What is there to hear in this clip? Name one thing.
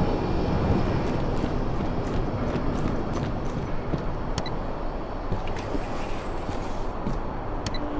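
Soft footsteps pad on a hard floor.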